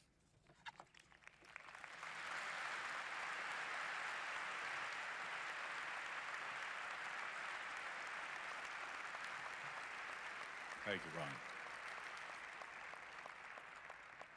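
A large audience applauds steadily.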